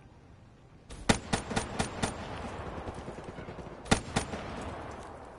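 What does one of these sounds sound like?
Gunshots crack sharply in quick bursts.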